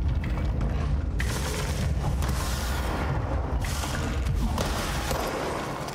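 Debris and chunks of rock crash and rumble.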